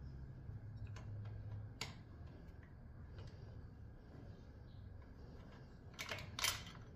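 A metal hex key clicks and taps against a machine.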